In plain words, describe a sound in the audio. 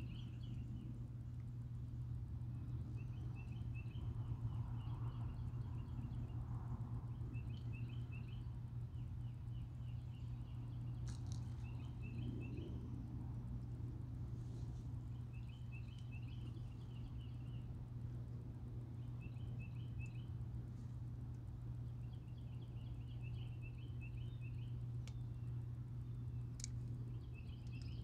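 A steady low rumble of flowing water and wind carries outdoors.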